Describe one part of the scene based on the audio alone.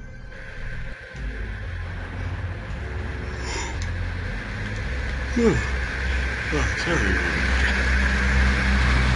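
A bus engine rumbles low.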